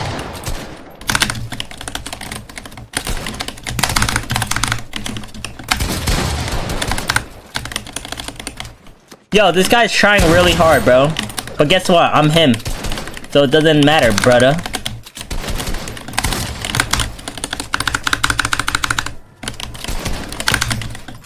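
Rapid clicks and clacks of building and gunfire sound from a video game.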